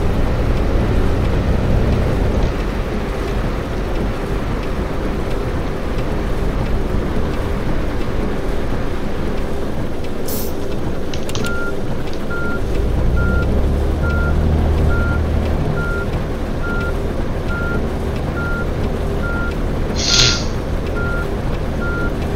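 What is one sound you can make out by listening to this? A bus engine rumbles steadily as the bus drives along.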